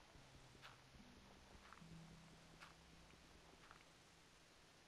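Dirt blocks break with short, soft crunches, several times.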